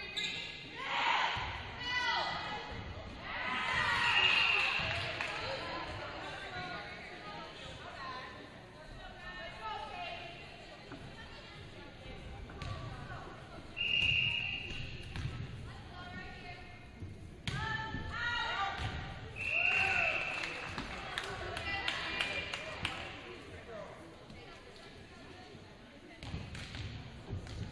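Young women volleyball players shout and call out on the court.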